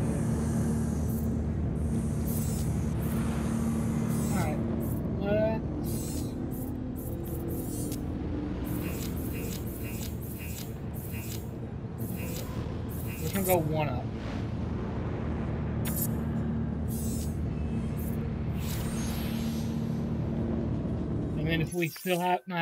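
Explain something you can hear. Short electronic menu clicks and swooshes sound as options change.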